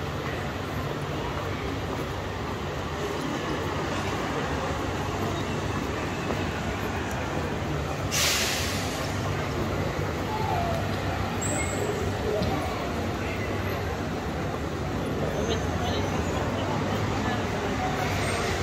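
Steady city traffic hums in the background outdoors.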